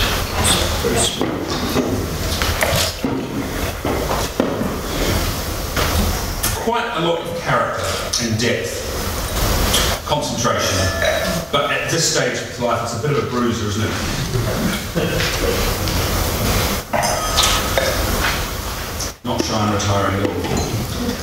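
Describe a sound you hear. A man speaks calmly to an audience through a microphone, in a large room that echoes a little.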